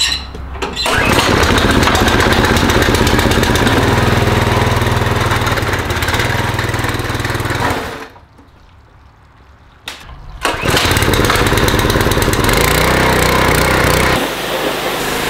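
A pressure washer engine runs with a loud, steady roar.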